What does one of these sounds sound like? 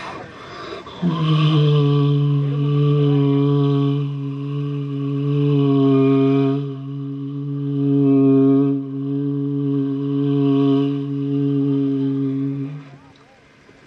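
A young man sings a long, drawn-out note through a microphone.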